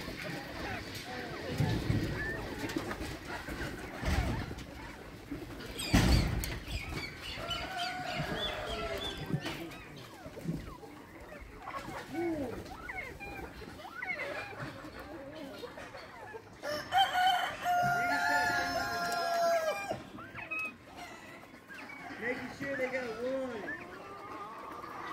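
Small birds chirp and call close by.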